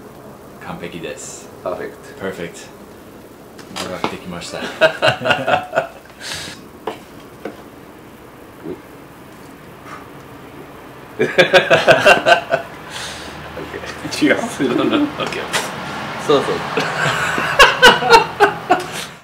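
A young man talks and laughs close by.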